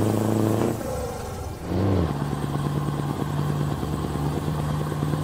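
A truck engine drones steadily, shifting pitch as gears change.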